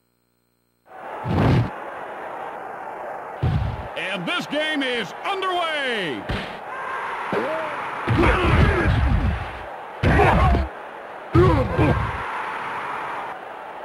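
A stadium crowd cheers and roars steadily.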